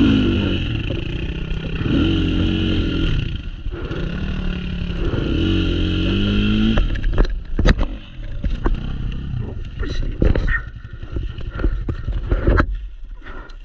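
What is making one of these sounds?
A dirt bike engine idles and revs nearby.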